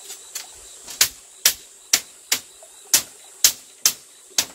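Feet press down on a bamboo floor with rhythmic creaking knocks.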